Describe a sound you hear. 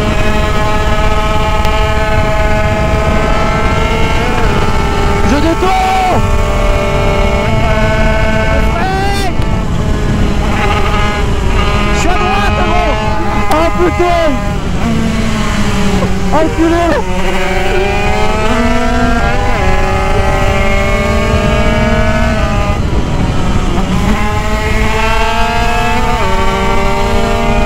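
A motorcycle engine revs hard and climbs through the gears up close.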